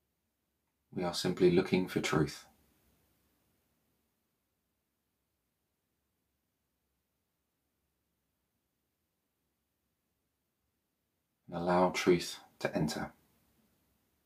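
A man speaks softly and calmly, close by, in short phrases with long silences between.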